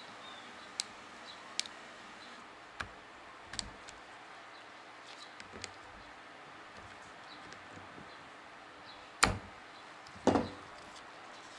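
Metal parts click and clink against each other as they are handled.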